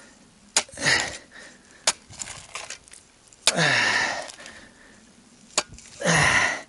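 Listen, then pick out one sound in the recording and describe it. A metal shovel clanks sharply against stones.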